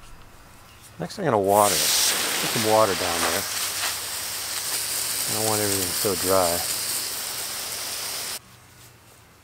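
Water sprays steadily from a hose onto hay.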